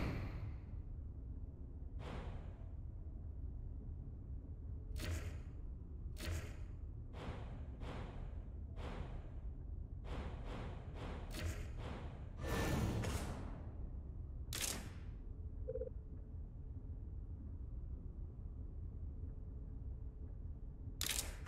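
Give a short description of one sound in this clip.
Short interface clicks and swishes sound as a game menu is moved through.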